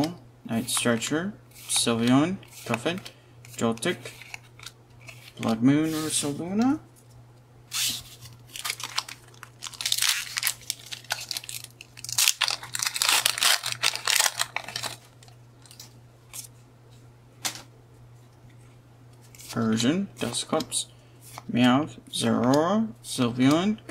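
Trading cards slide against each other as they are flipped.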